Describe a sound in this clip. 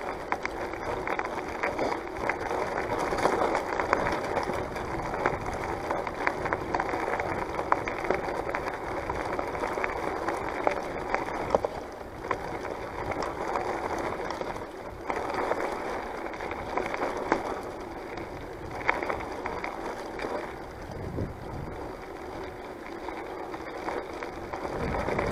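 A small vehicle rolls along a gravel track, its tyres crunching and rattling.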